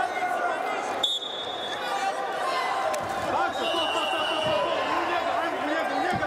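Shoes squeak on a wrestling mat.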